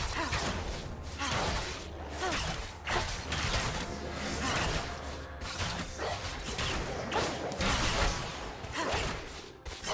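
Magic spells whoosh and blast in a game fight.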